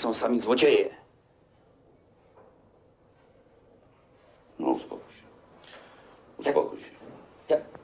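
A middle-aged man speaks in short, low bursts close by.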